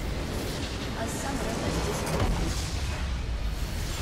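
A structure crumbles and explodes.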